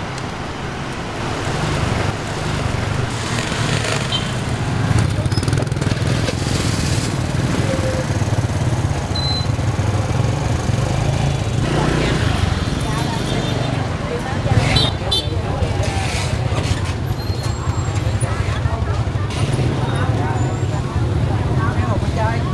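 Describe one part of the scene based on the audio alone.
Motorbike engines putter and idle close by in a busy street.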